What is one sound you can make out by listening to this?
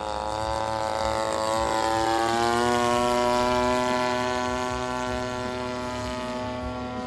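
A model airplane engine buzzes overhead, its pitch dropping slightly as it flies past.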